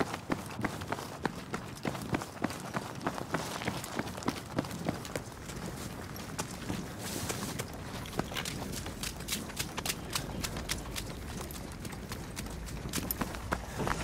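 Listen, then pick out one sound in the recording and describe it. Running footsteps crunch on gravel.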